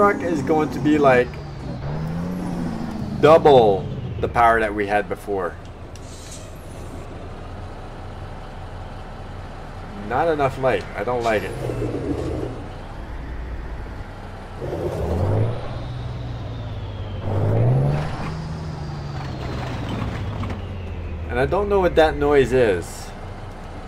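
A diesel semi truck engine rumbles and revs.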